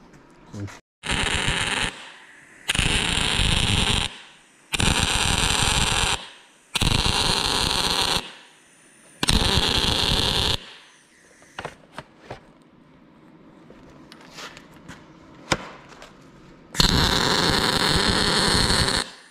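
An angle grinder grinds metal in loud, short bursts.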